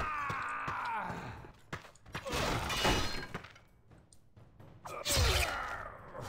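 A sword strikes a body with a sharp thud.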